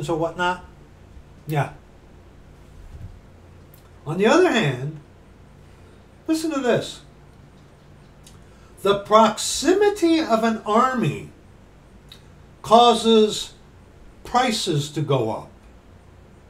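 A middle-aged man reads aloud close to a microphone, in short expressive bursts.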